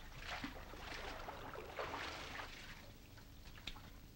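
Water splashes as a boy swims.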